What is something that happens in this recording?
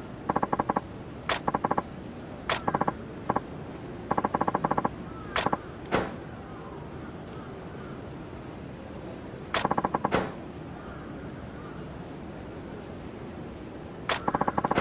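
Short electronic blips chirp in rapid bursts.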